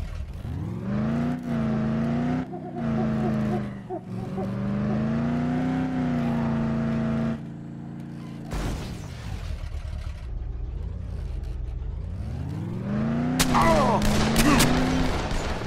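A car engine revs and hums steadily, rising and falling in pitch.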